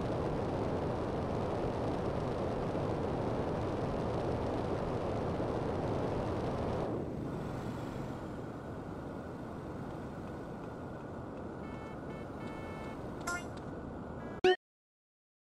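A video game jetpack roars with a steady rushing thrust.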